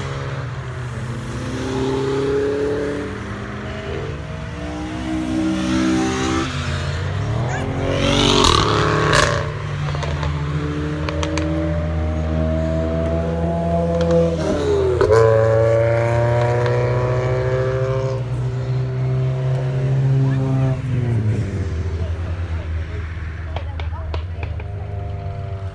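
Car engines roar and rev as cars race past one after another.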